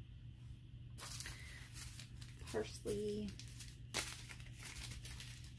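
A paper seed packet rustles and crinkles as it is torn open.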